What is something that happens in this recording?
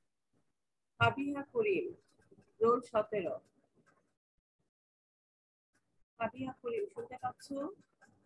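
A young woman speaks calmly through a microphone, in short bursts.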